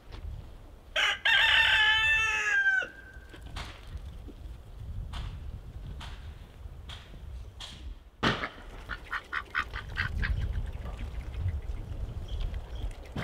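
Ducks quack loudly nearby.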